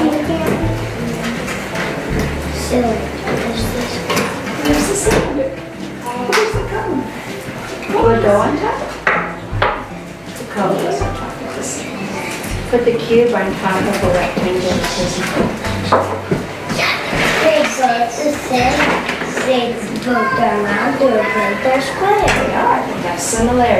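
An elderly woman speaks calmly and softly nearby.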